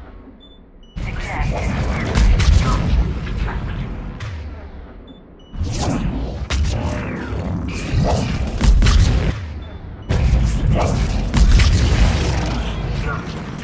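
Explosions thunder with deep rumbling.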